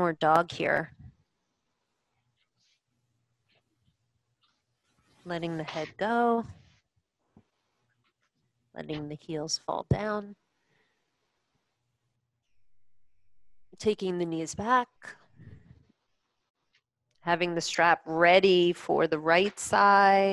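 A young woman speaks calmly into a close microphone, pausing between phrases.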